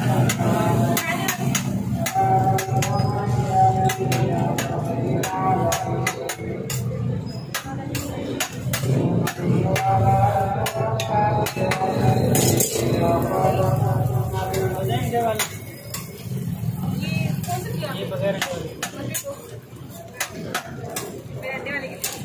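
A metal spatula clinks and scrapes against a hot griddle.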